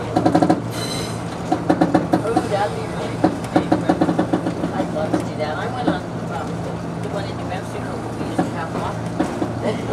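A diesel railcar's engine drones.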